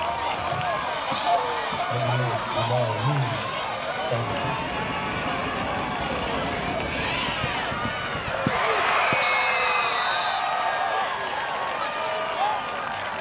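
A large crowd of spectators chatters and cheers outdoors.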